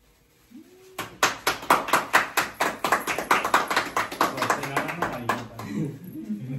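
A small group claps hands quickly and loudly.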